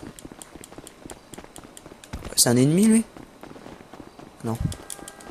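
Quick footsteps patter on pavement.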